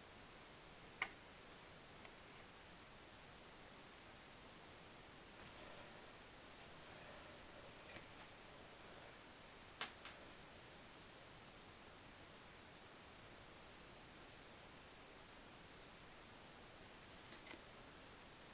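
Metal parts click sharply into place a few times.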